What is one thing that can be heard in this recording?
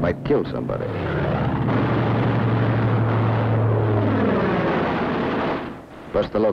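A propeller plane's engine roars louder as it dives, then fades.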